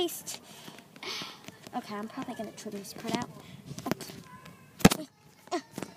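A hand rubs and bumps against a doll up close.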